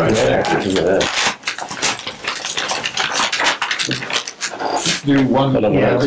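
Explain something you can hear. Paper rustles and tears as envelopes are opened.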